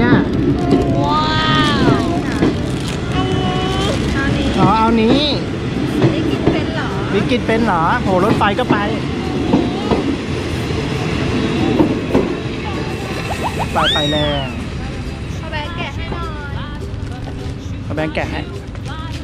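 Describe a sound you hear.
Small children talk and squeal close by.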